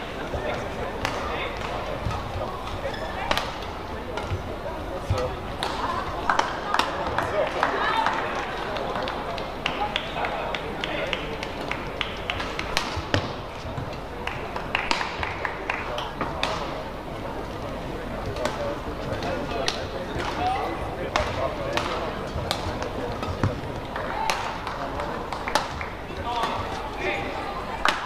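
Shuttlecock hits from badminton rackets ring out sharply, again and again, in a large echoing hall.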